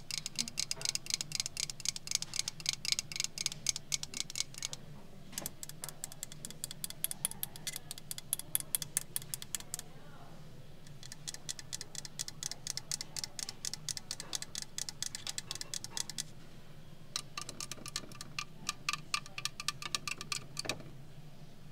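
Long fingernails tap quickly on carved wood.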